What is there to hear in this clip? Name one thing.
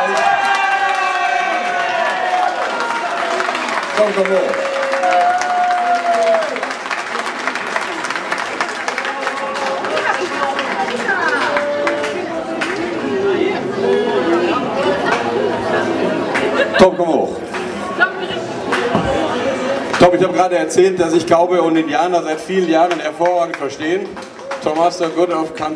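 A crowd chatters and laughs in a large echoing hall.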